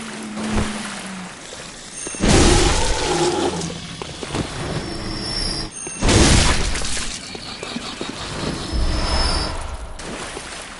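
A blade swings and strikes a creature with heavy thuds.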